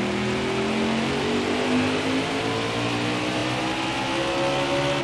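A race car engine roars steadily at high speed, its pitch shifting slightly.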